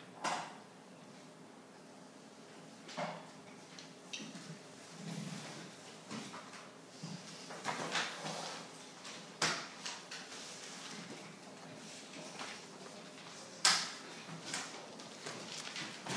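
A pen scratches and taps on paper.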